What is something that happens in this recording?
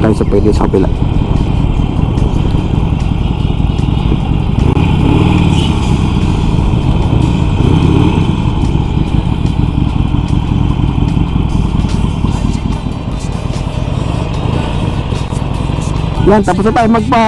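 A motorcycle engine idles with a low, steady rumble.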